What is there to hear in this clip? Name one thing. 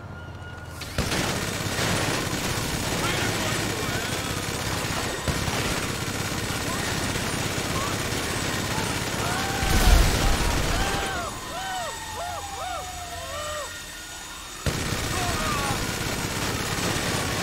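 A rotary machine gun fires in a rapid, continuous roar.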